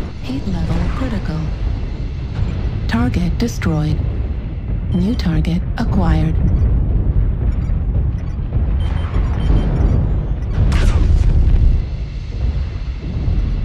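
A deep mechanical rumble drones steadily.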